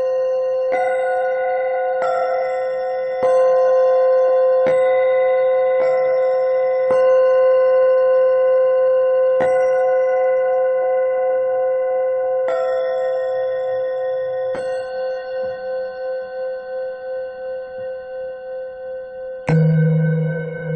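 A steady electronic tone hums, shifting pitch in sudden steps.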